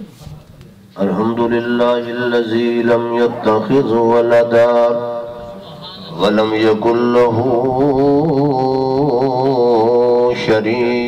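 A man chants loudly in a melodic voice through a microphone.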